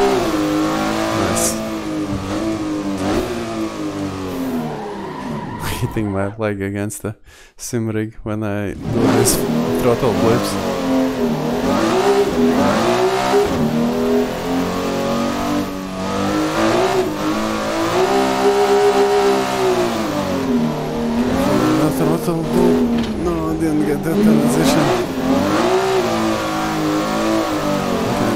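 A racing car engine roars, revving up and down through gear changes.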